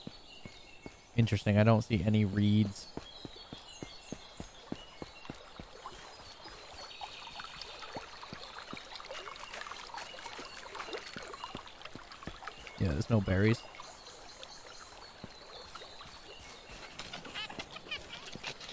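Footsteps crunch over dry ground and grass.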